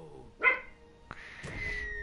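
Blades clash in a brief fight.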